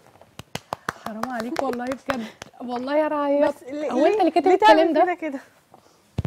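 A young woman talks cheerfully into a microphone.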